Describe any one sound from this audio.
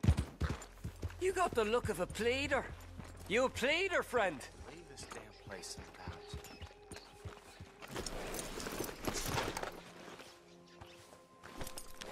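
A horse's hooves thud on a dirt street.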